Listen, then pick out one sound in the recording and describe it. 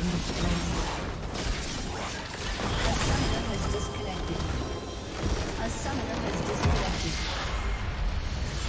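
Fantasy battle sound effects crackle, whoosh and clash in a video game.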